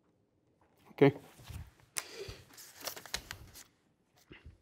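Paper rustles and taps on a table.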